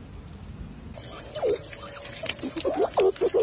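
Squirrels squeak and chatter close by.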